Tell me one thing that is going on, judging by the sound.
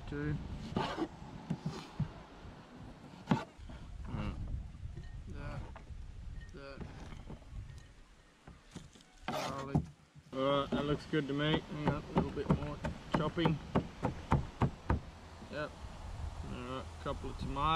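A knife chops vegetables with sharp taps.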